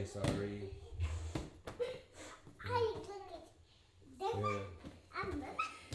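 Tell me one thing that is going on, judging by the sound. A young girl lands with soft thuds on foam mats.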